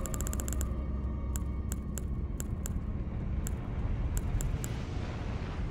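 Short, soft menu clicks tick quickly, one after another, as a selection moves.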